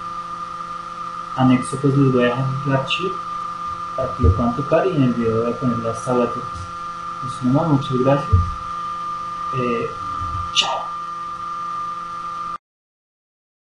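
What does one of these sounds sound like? An electric guitar is strummed quietly.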